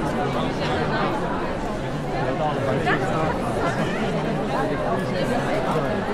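A crowd of men and women chatters steadily in a large echoing hall.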